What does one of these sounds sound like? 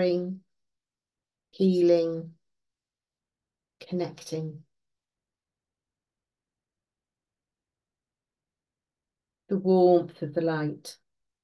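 An elderly woman speaks calmly in short phrases with pauses, heard through an online call.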